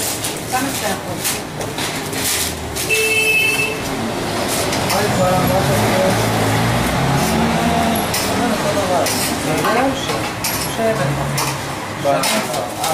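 Metal utensils clatter and scrape against trays.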